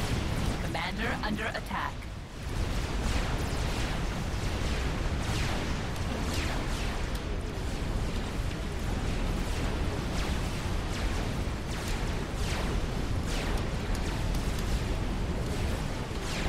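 Explosions boom and rumble steadily.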